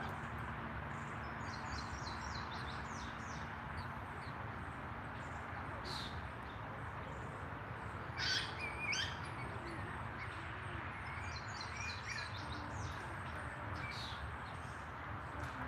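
Young ducklings peep softly and rapidly, close by, outdoors.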